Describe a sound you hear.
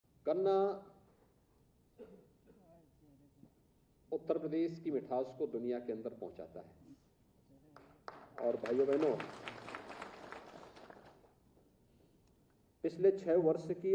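A middle-aged man speaks calmly through a microphone in a large echoing hall, pausing between phrases.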